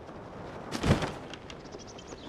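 A heavy thud sounds as a game character lands from a glide.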